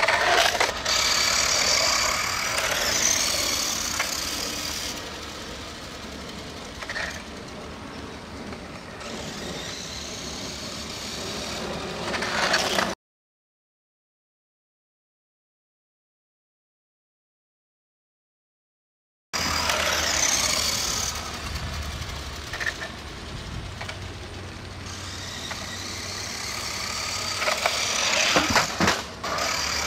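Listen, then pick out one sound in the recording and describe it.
A small toy car's electric motor whines as the car speeds away and comes back, fading and growing louder.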